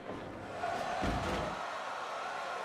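A body slams onto a mat with a heavy thud.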